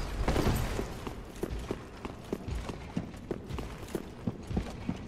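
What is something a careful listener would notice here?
Armoured footsteps run quickly over stone.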